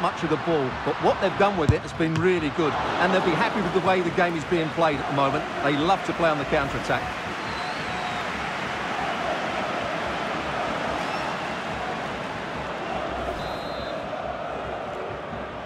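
A large stadium crowd murmurs and cheers steadily in the distance.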